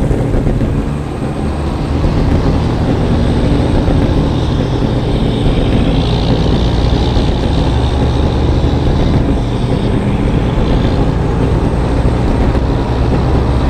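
Tyres roll with a steady hum on a road.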